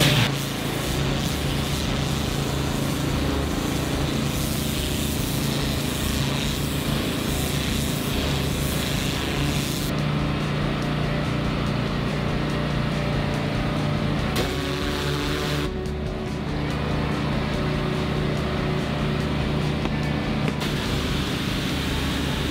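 A pressure washer engine hums steadily nearby.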